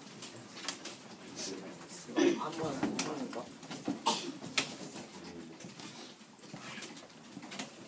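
Keys clatter as a student types on a keyboard.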